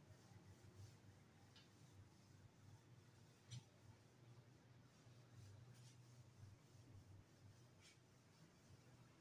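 An eraser rubs and squeaks across a whiteboard.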